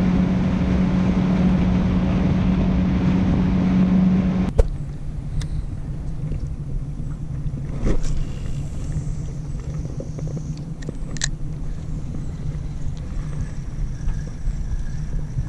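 Water laps and splashes.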